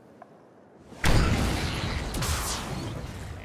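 Sparks burst with a loud crackling rush.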